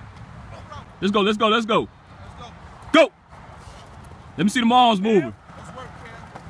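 A young man calls out.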